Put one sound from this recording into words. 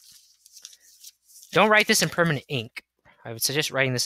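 Paper rustles as a notebook page is turned over.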